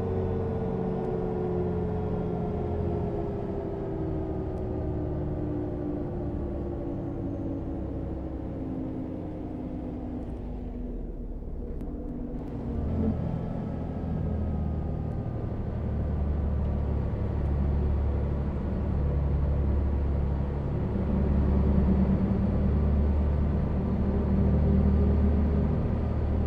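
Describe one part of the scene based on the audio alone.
A bus engine drones steadily, its pitch sliding down and then rising again after a gear change.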